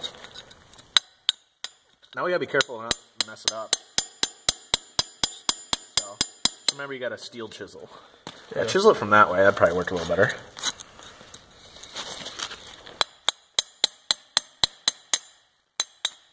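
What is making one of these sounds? A hammer strikes a chisel, chipping plaster with sharp, rapid knocks.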